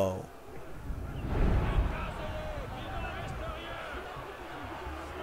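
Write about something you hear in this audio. A large crowd murmurs and shouts outdoors.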